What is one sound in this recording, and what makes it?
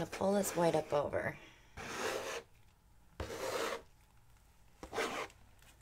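A plastic scraper scrapes across a wet painted surface.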